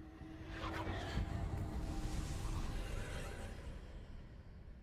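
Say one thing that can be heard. A magic spell crackles and whooshes in a burst of sparkling energy.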